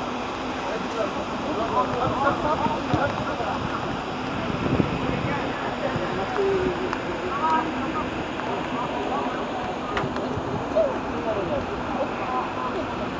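Men shout and call out to each other across an open field outdoors.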